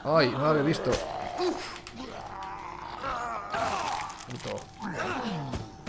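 A zombie growls and snarls.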